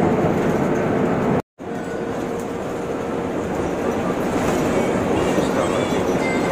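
Tyres roar steadily on a smooth road.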